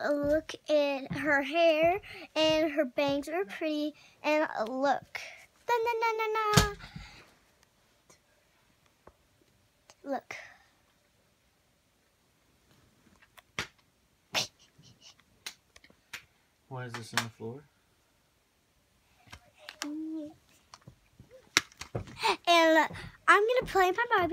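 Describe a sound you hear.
A young girl talks close by with animation, in a high voice.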